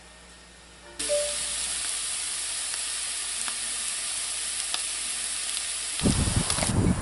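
Potatoes sizzle and crackle in a frying pan.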